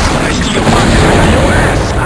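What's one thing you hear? A fireball explodes with a loud boom.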